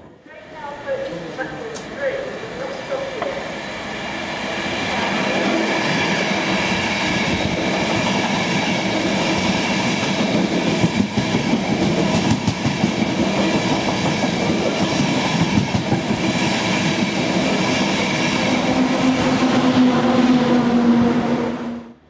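A train approaches and rushes past with a loud, steady roar.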